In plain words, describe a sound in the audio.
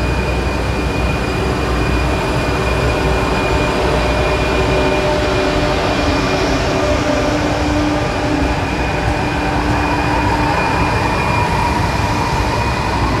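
An electric passenger train rushes past at speed with a roar of wheels on rails.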